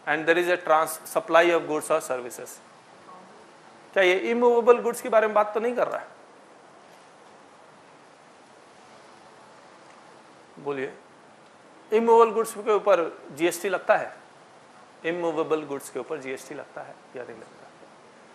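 A man speaks calmly and clearly in bursts with pauses.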